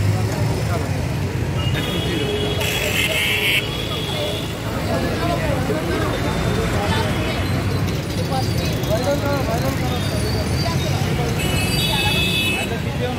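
A crowd of men talks and murmurs nearby.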